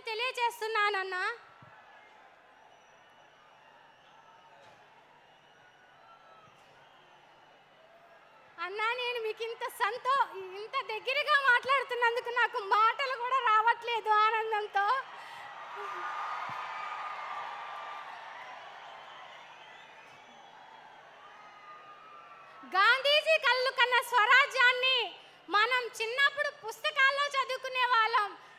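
A woman speaks with animation into a microphone, heard over loudspeakers.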